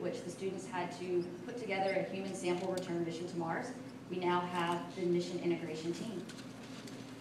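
A woman speaks into a microphone over a loudspeaker in a large echoing hall.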